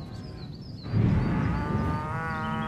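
An energy blast bursts with a loud whoosh.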